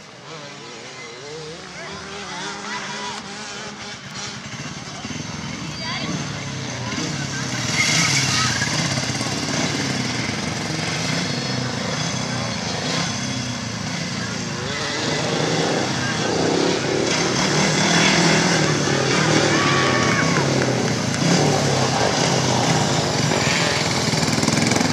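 Motorcycle engines roar around a dirt track, growing louder as they approach.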